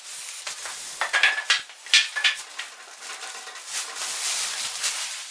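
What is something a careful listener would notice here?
A plastic wrap crinkles as it is lifted off.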